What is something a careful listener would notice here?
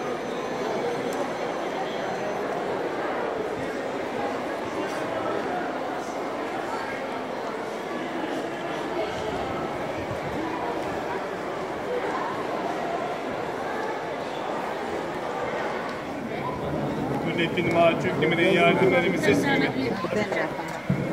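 A large crowd chatters outdoors in a steady murmur.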